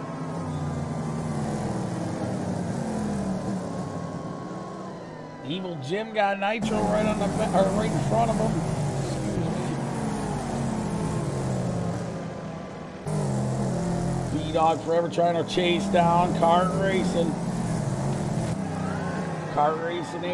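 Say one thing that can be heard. Race car engines roar and whine as they rev through the gears.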